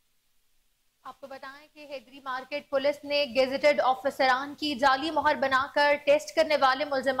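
A young woman reads out the news clearly through a microphone.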